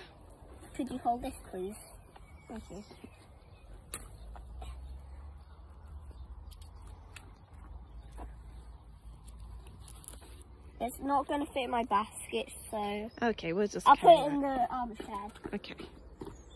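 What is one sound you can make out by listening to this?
A young girl talks close by, with animation.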